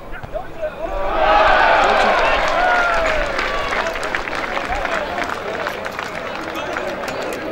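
A small crowd of spectators cheers and applauds outdoors.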